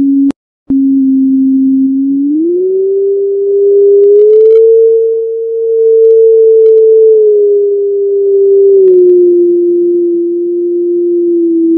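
A steady electronic tone plays, stepping up and down in pitch.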